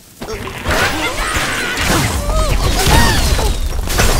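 A cartoon explosion booms.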